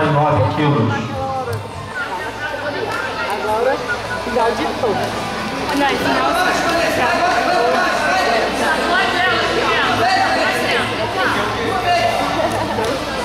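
A crowd of spectators shouts and cheers nearby outdoors.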